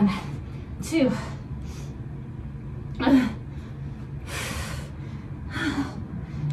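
A young woman breathes out hard with each push-up.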